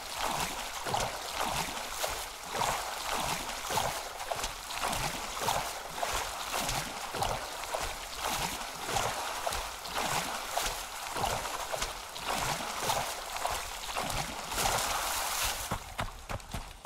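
A game character splashes rhythmically while swimming through water.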